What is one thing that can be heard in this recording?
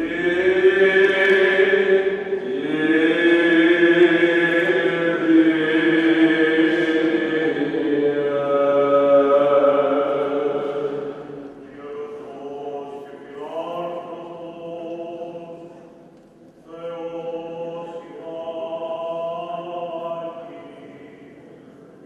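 A man chants a long, held melody into a microphone in an echoing hall.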